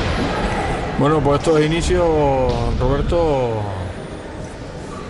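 A man shouts loudly from nearby in an echoing hall.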